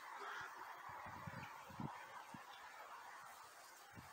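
A fishing rod swishes softly as it is lifted from the water.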